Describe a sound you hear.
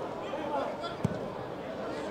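A football is kicked hard on grass.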